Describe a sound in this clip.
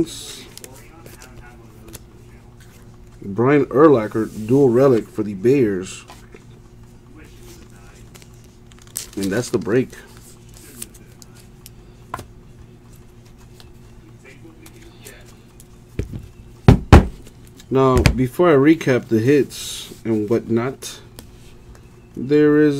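Trading cards rustle and slide against each other as they are handled.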